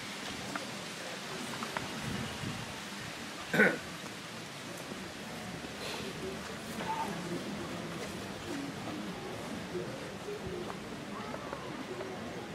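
A crowd murmurs quietly outdoors.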